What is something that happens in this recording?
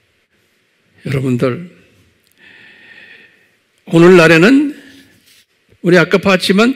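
A middle-aged man speaks slowly and deliberately into a microphone, in short bursts with pauses.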